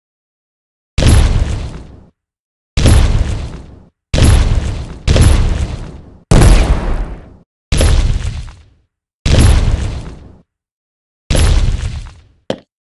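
Heavy crashing thuds sound again and again as a giant stomps through buildings.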